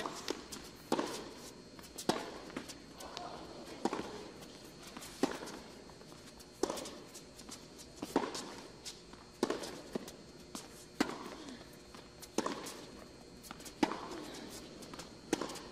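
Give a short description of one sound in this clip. A tennis ball is struck back and forth with sharp pops of the racket in a large echoing hall.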